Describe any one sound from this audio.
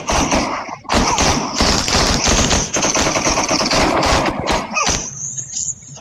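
Rapid gunshots fire at close range.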